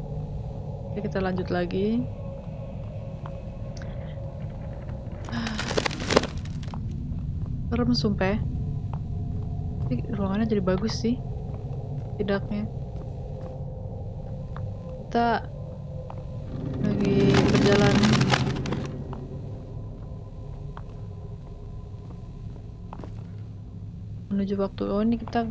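A young woman talks in short bursts close to a microphone.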